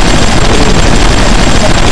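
A machine gun fires in bursts.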